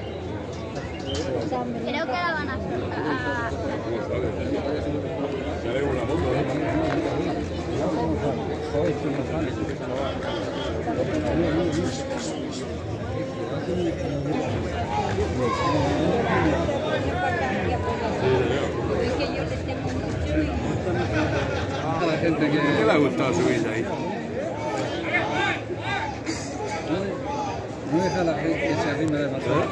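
A crowd of men and women chatter and shout outdoors.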